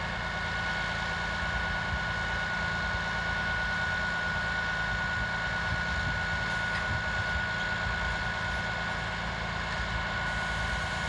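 A large diesel engine idles with a steady low rumble and a constant whine.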